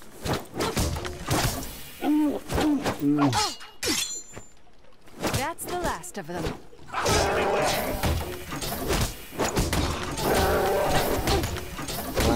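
Swords swish and clang in a cartoonish fight.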